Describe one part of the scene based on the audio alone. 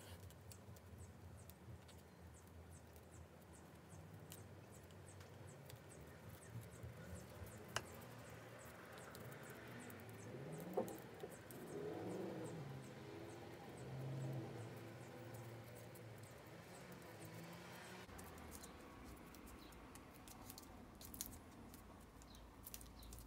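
Cord rubs and creaks softly as it is wound tightly around a handle.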